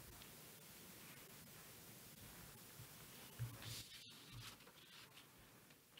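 Footsteps cross a hard floor.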